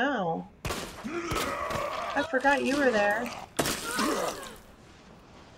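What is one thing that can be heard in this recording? A young woman grunts and strains in a struggle.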